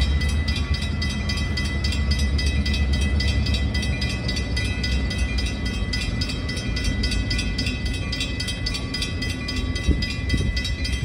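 A train rumbles as it approaches.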